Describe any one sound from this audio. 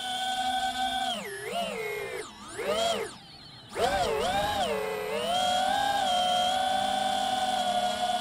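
A drone's motors whine loudly, rising and falling in pitch as it swoops and turns.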